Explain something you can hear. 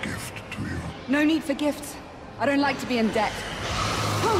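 A young woman speaks with strain nearby.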